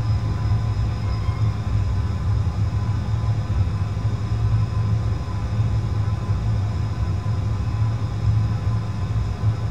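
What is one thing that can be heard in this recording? Jet engines hum steadily with a low rumble as an airliner taxis.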